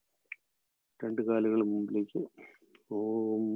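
A man chants in long, steady tones, heard through an online call.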